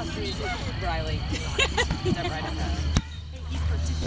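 A foot kicks a rubber ball with a dull thud.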